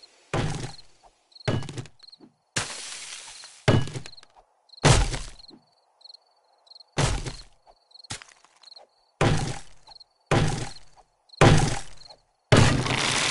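An axe chops into a tree trunk with repeated heavy thuds.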